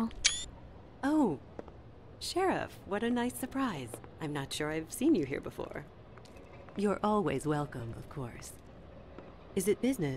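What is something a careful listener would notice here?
A young woman speaks calmly and with surprise, close by.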